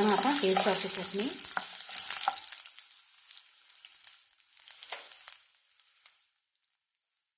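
Lentils and garlic sizzle in hot oil in a wok.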